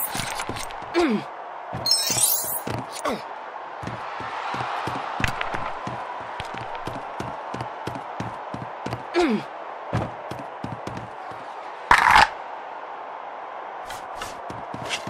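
Footsteps tap quickly on wooden boards.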